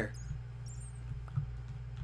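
A block breaks with a crunching sound.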